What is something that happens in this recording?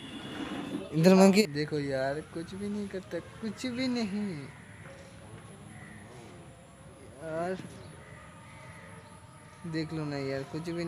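A young man speaks close by, in a lively, cheerful voice.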